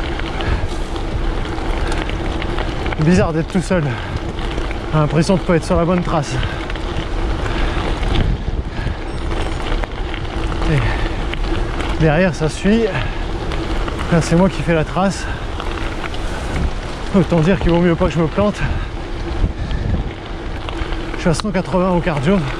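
Bicycle tyres crunch over a gravel path.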